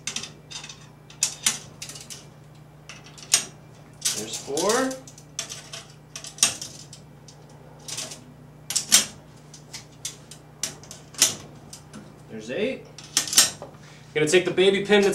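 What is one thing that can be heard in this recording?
Thin metal rods click and tap against a metal ring.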